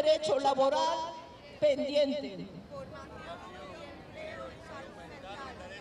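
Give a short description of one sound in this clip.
A crowd murmurs and talks in the background.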